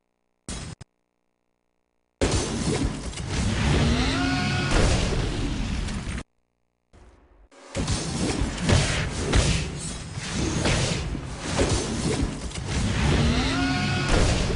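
Blades clash and slash in a fierce fight.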